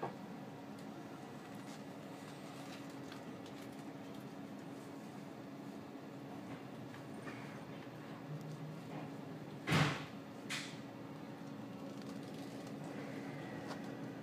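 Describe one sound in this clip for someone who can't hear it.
A train's interior hums steadily as it stands at rest.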